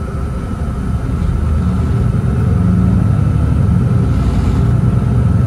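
A diesel city bus speeds up, its engine growling louder.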